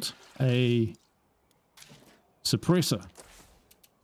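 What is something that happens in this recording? A man speaks briefly with animation, close to a microphone.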